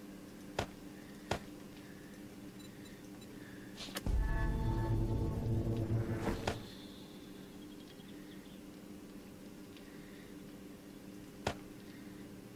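Short clicks sound now and then as items are sorted.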